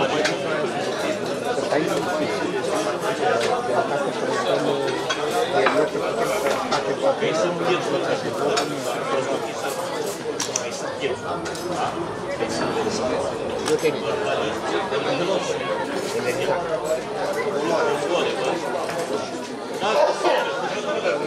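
A crowd of men and women chatters and talks all around, in a lively hum of many voices.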